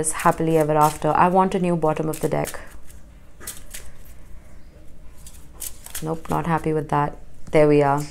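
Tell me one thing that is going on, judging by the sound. Playing cards riffle and slap softly as a deck is shuffled by hand.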